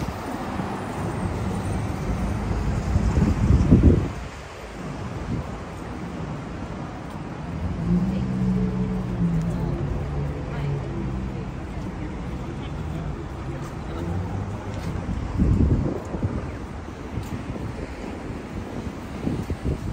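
Traffic hums steadily on a busy city street.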